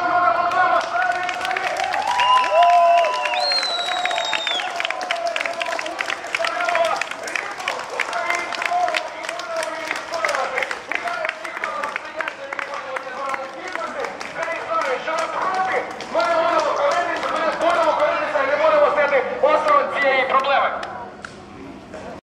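A crowd of people claps in rhythm outdoors.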